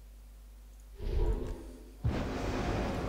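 A magical spell swooshes and crackles.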